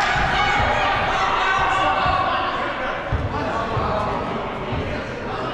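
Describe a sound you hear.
Many people shout and call out in a large echoing hall.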